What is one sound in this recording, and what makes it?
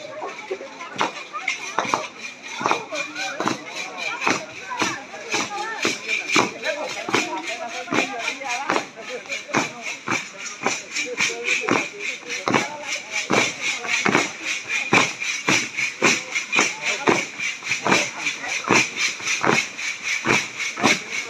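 Dancers' feet stamp and shuffle rhythmically on pavement outdoors.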